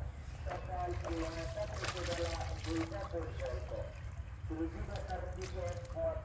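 Water sloshes as a boy wades through a shallow muddy pond.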